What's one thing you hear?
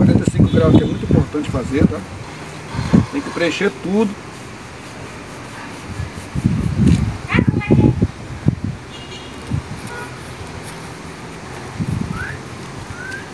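A broom scrapes across a concrete floor.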